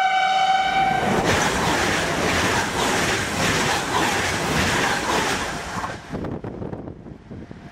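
A train rushes past close by with a loud roar.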